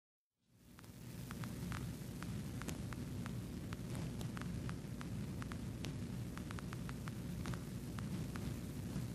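A vehicle's engine rumbles steadily as it drives along a road.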